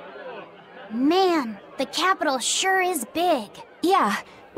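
A young boy speaks with excitement.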